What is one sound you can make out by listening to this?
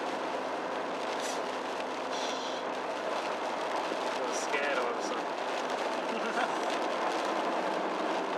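Windscreen wipers swish across the glass now and then.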